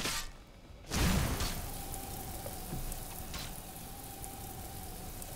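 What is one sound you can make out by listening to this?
A magic spell bursts out with a whoosh and then hums steadily.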